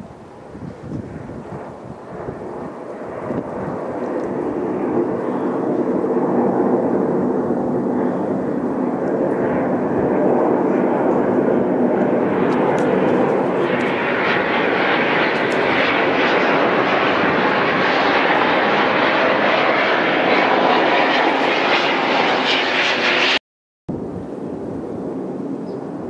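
A jet aircraft roars overhead, growing louder.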